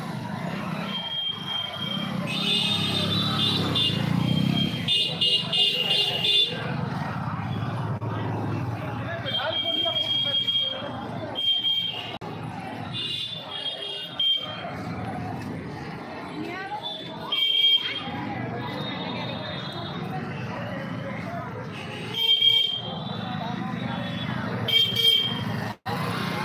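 Motorbike horns beep in short bursts.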